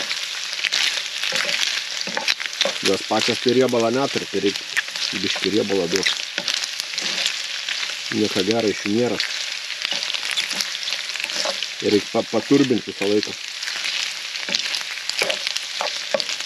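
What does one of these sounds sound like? A spatula scrapes and stirs in a frying pan.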